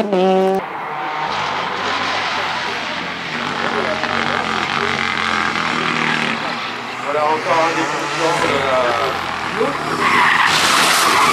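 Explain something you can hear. A rally car engine roars and revs hard as the car speeds past.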